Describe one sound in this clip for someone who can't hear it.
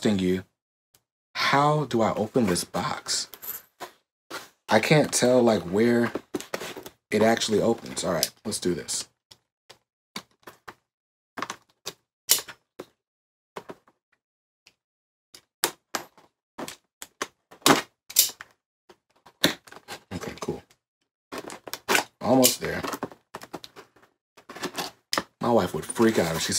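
A man talks calmly and close by.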